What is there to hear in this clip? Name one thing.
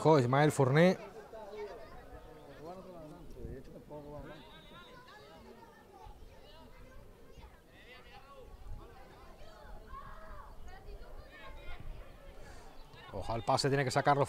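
Football players call out to each other in the distance.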